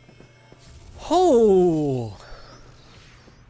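A young man lets out a loud, drawn-out shout.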